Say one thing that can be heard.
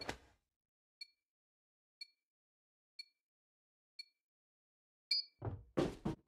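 A countdown timer beeps once each second.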